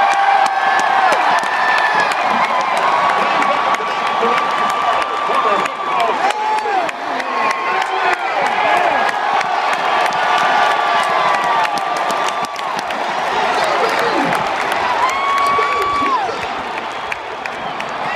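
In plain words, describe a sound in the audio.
A huge stadium crowd roars and cheers outdoors.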